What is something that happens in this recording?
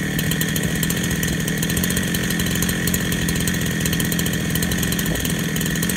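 A chainsaw engine idles steadily close by.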